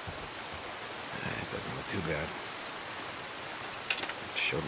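Metal clanks and rattles as a tool works on a motorcycle.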